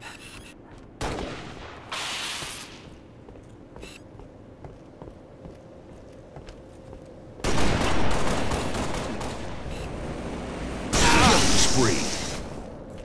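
Loud bursts of video game combat sounds blast and clash.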